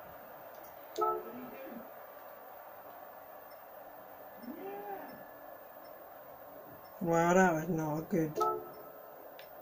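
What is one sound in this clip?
Short electronic menu chimes sound from a game.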